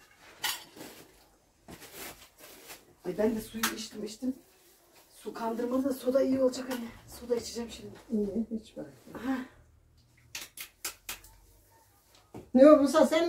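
Dough pats and slaps softly on a wooden board.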